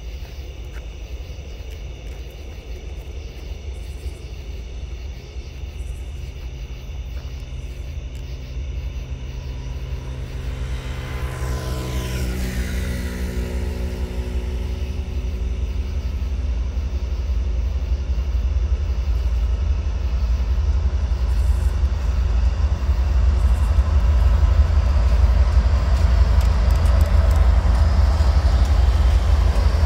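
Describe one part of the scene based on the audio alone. A diesel locomotive rumbles closer, growing steadily louder.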